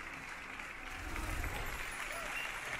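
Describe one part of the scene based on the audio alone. A magic spell bursts with a low whoosh.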